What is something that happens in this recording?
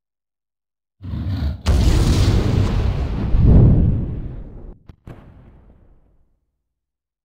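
A huge beast roars loudly, echoing and slowly fading.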